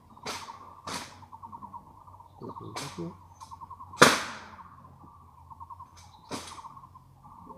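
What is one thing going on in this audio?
Rifle butts and boots strike the ground sharply in a slow, irregular drill.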